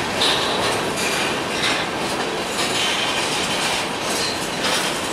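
Steel wheels squeal against the rails.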